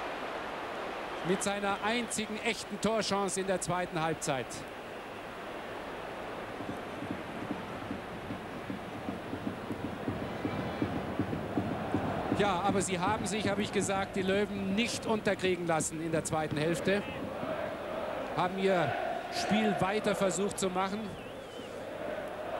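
A large stadium crowd murmurs and cheers steadily outdoors.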